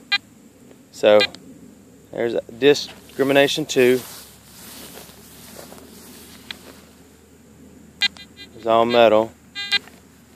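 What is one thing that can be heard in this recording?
A metal detector sounds warbling tones that rise and fall in short bursts.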